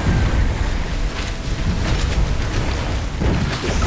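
Water splashes loudly.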